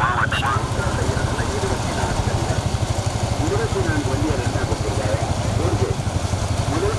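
A man shouts at his racing bulls.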